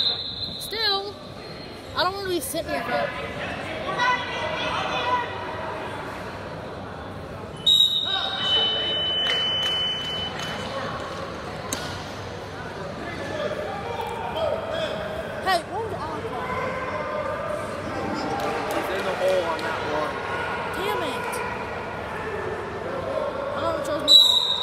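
Wrestlers thud and scuff on a mat.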